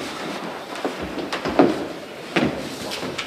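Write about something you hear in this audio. Knocks and thumps sound on a table.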